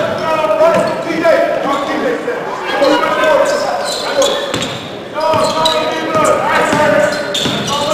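Sneakers squeak on a wooden court in a large echoing gym.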